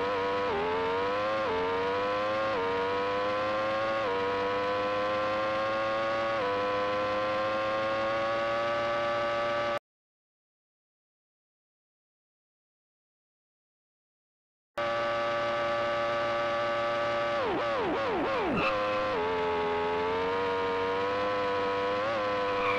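A racing car engine whines at high revs, climbing in pitch and dropping briefly with each gear change.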